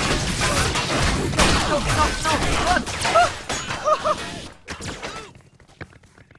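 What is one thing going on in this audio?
Gunfire and explosions from a video game rattle and boom in quick bursts.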